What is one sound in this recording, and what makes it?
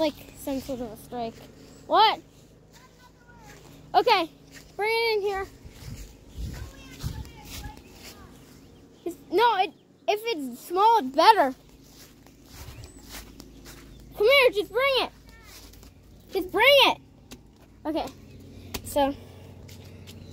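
A young boy talks close by in short, lively bursts.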